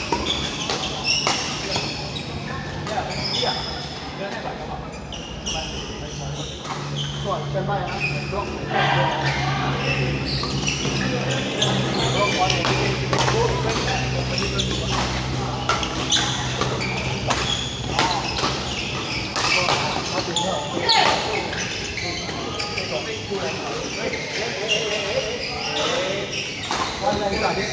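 Badminton rackets smack a shuttlecock in a large echoing hall.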